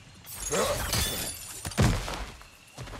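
A warrior lands heavily on the ground with a thud.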